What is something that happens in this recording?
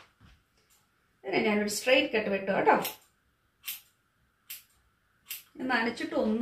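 Scissors snip through hair.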